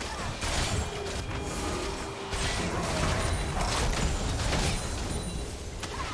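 Game spell effects burst and crackle in a busy fight.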